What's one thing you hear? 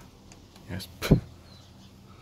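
A finger presses a metal button with a click.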